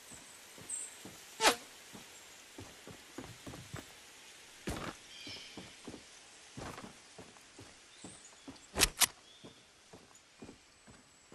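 Footsteps clatter quickly on wooden planks.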